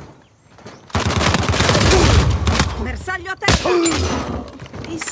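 Gunfire rattles in quick bursts at close range.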